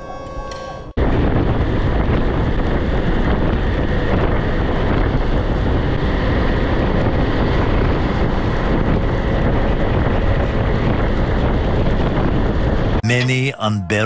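Wind roars loudly against a fast-moving motorcycle.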